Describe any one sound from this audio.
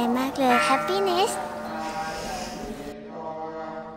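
A young boy laughs and speaks happily up close.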